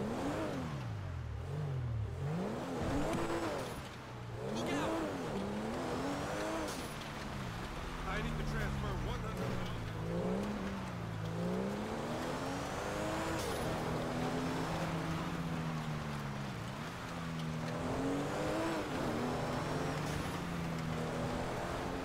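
A sports car engine revs hard, rising and dropping in pitch as it shifts gears.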